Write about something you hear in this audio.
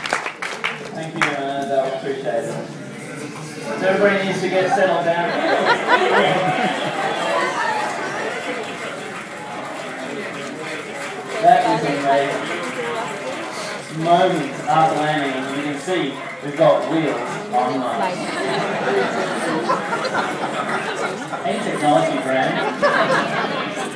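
A man speaks over a loudspeaker with animation.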